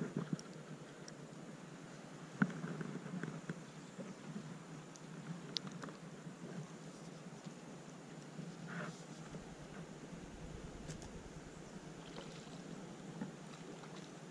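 A fishing reel clicks softly as it is wound.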